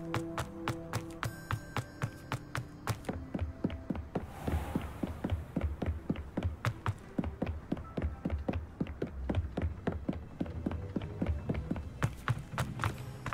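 Quick footsteps run across stone and wooden floors.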